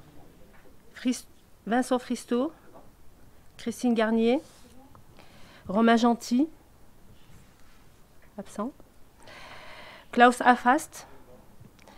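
A middle-aged woman speaks slowly into a microphone, pausing often.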